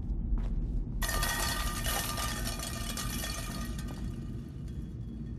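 Tin cans clatter and rattle together.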